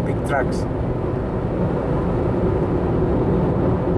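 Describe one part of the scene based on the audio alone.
A truck rumbles past in the opposite direction.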